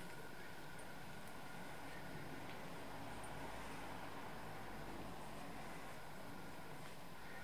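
Blankets rustle softly as a cat wrestles with a feathered toy.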